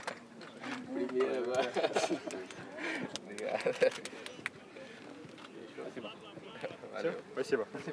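Young men laugh together nearby.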